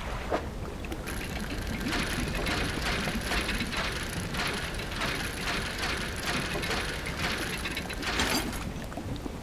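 Rapid rhythmic ticking sounds as a fishing line is reeled in.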